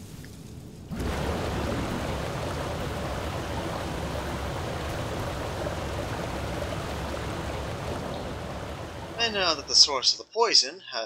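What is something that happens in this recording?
A jet of energy roars upward with a steady rushing hiss.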